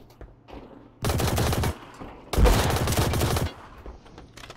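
A submachine gun fires rapid bursts at close range.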